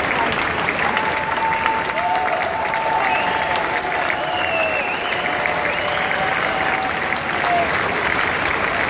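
A choir sings.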